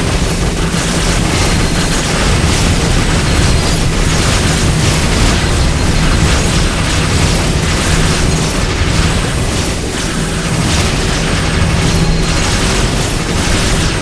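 Explosions boom in bursts.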